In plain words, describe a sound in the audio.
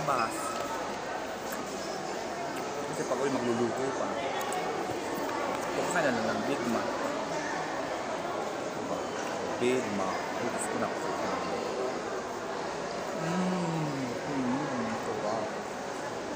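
An older woman speaks calmly close by.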